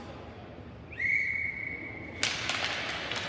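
A referee's whistle blows sharply for about a second.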